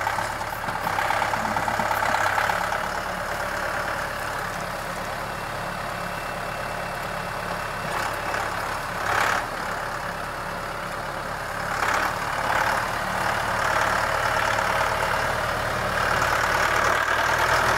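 Tyres crunch over dirt and gravel.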